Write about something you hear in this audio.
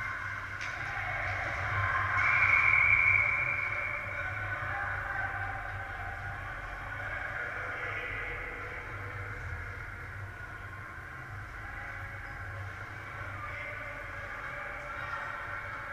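Skates scrape faintly across the ice in a large echoing hall.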